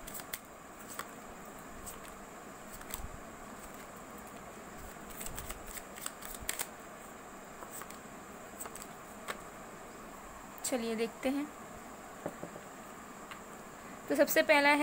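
Paper cards rustle and flick as they are shuffled by hand.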